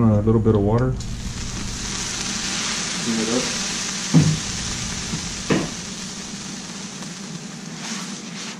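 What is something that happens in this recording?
Water sizzles and hisses loudly on a hot griddle.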